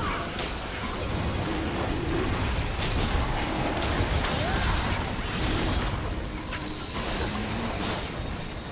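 Game spell effects whoosh and crash during a fight.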